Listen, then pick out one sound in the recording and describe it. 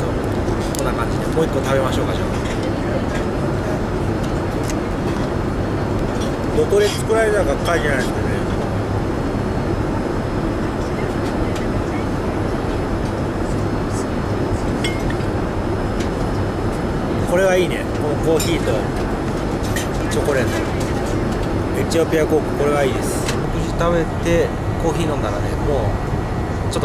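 A steady low roar of aircraft engines fills the air.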